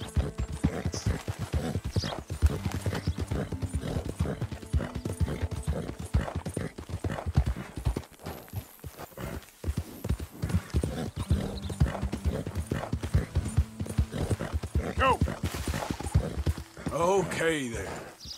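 A horse gallops with quick, heavy hoofbeats on soft ground.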